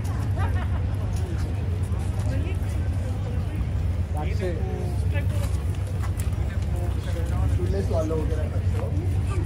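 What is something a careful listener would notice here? Young men talk and laugh cheerfully nearby, outdoors.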